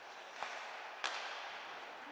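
A hockey stick sharply strikes a puck.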